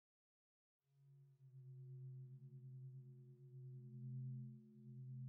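A low, steady droning hum plays.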